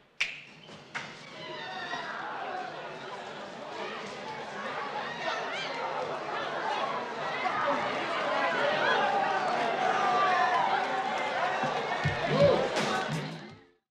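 A crowd of people chatters and murmurs in an echoing hall.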